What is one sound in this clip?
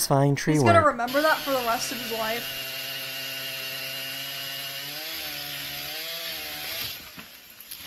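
A chainsaw engine runs steadily and cuts through wood.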